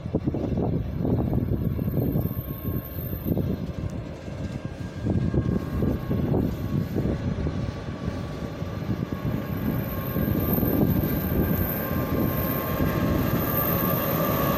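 A train rumbles as it approaches along the track.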